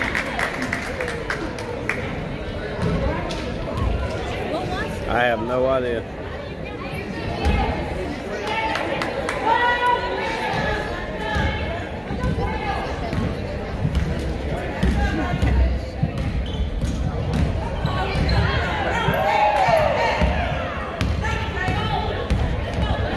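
Sneakers squeak on a hardwood floor in an echoing gym.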